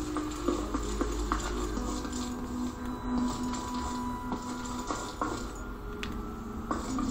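Video game music and effects play through a small tablet speaker.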